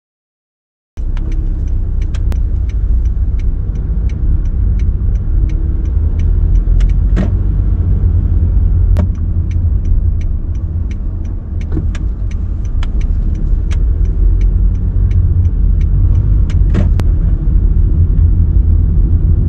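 A car rolls slowly over pavement, heard from inside the car.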